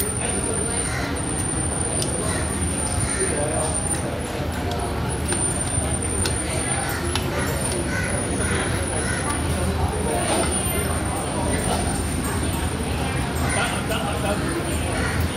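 A busy crowd murmurs in a large, echoing hall.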